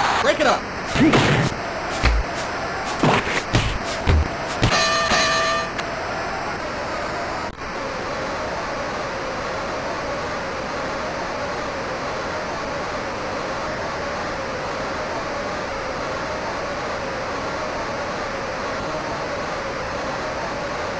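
A crowd roars steadily.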